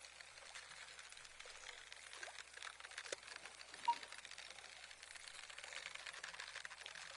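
A fish splashes and thrashes at the water's surface.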